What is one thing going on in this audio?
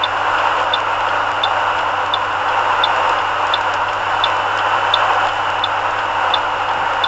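Wind blows against a moving car.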